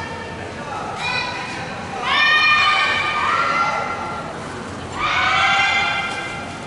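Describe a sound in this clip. Young women shout loudly together in a large echoing hall.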